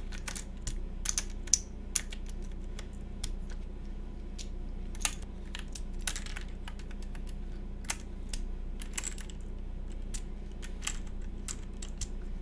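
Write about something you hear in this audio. Plastic keycaps click and clack as they are pressed onto a keyboard.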